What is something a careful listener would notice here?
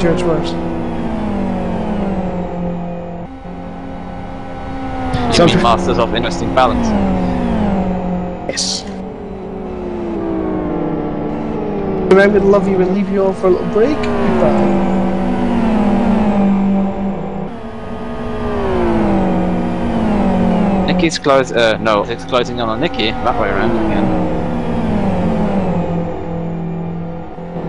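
Racing car engines roar and rev, shifting gears as they speed past.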